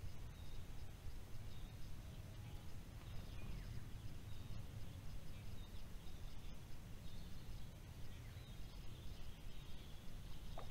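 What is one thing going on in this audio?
Wind rumbles steadily across the open air outdoors.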